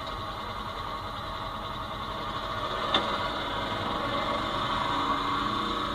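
An off-road vehicle's engine drones steadily through a television speaker.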